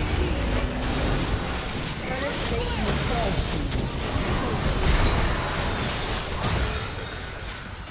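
Spell effects whoosh and crackle in a fast video game battle.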